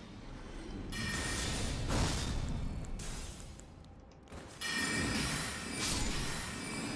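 A sword swings through the air with a sharp whoosh.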